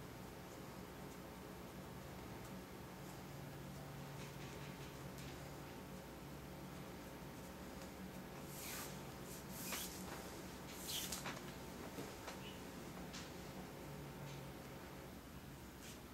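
Hands rustle and rub against a braided cord.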